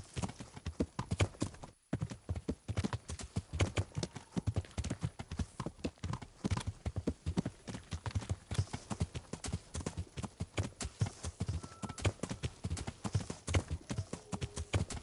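A horse gallops with rapid, heavy hoofbeats on the ground.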